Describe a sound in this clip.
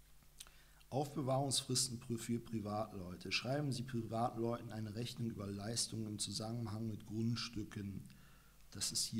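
A man reads aloud calmly, close to a microphone.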